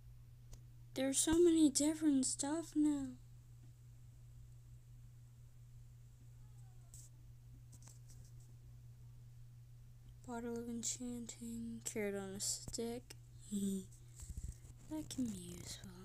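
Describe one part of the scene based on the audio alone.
A young child talks with animation close to a microphone.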